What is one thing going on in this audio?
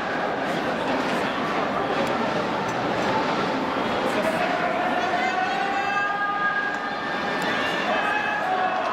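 Brass trumpets play a loud fanfare tune.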